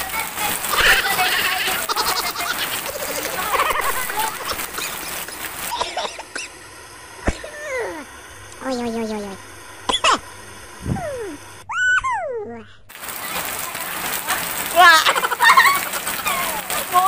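A woman talks with animation and laughs.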